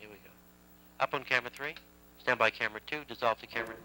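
A man speaks clearly through a microphone.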